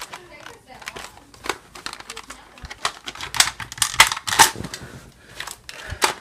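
A plastic toy blaster clicks and rattles as it is handled.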